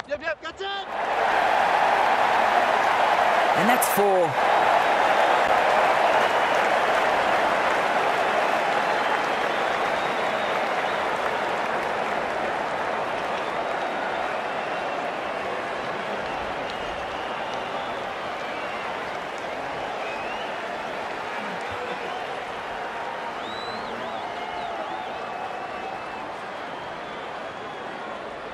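A large crowd cheers and roars steadily in a stadium.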